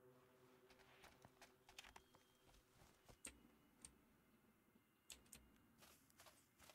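Footsteps thud on sand.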